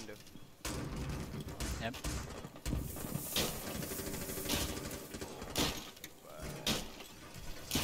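Metal panels clank and thud as a wall is reinforced.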